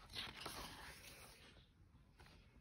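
A page of a book is turned with a soft rustle.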